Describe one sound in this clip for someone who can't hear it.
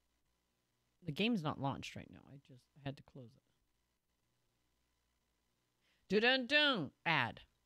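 A young woman speaks with animation into a close microphone, in short bursts with pauses.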